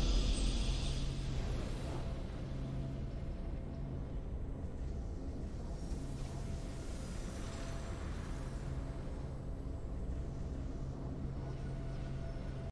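A triumphant game fanfare plays softly with steady held notes.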